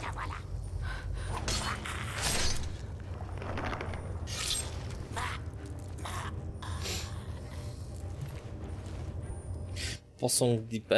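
Weapons clang and thud in a fight.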